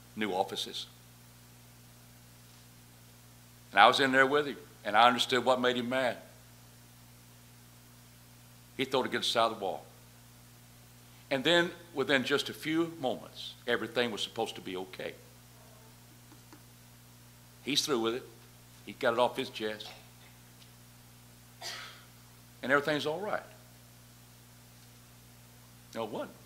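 A middle-aged man speaks into a microphone with pauses, in a calm, lively manner.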